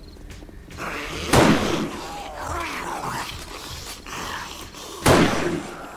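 Zombies groan and growl nearby.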